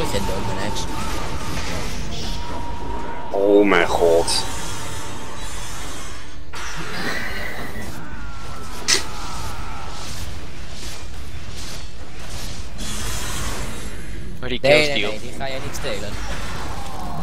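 Weapons clash and strike in a video game fight.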